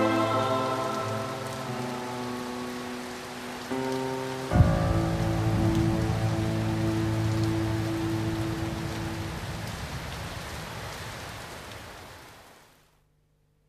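Heavy rain pours steadily outdoors.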